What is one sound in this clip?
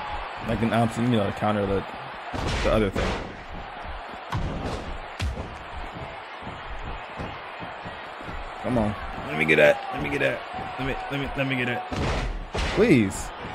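A body slams hard onto a wrestling mat with a loud thud.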